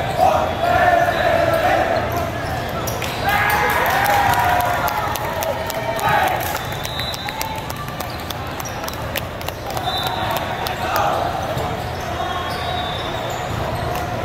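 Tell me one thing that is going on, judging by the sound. Young players shout and cheer together in a large echoing hall.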